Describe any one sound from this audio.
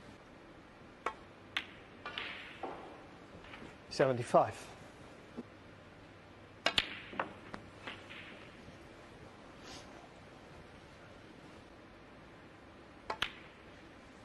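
Snooker balls click sharply against each other.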